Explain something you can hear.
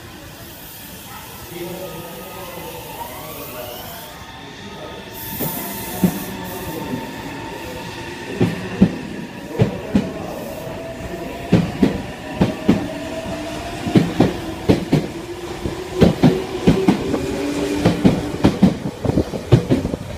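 A train's electric motor whines, rising in pitch as it pulls away.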